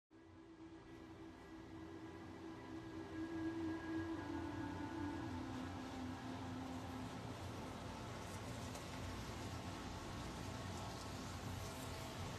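A paintbrush dabs and scratches against a canvas.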